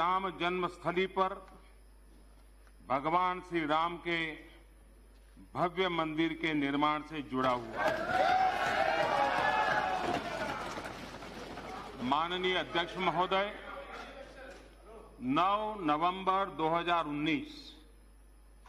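An elderly man speaks steadily into a microphone, pausing between phrases.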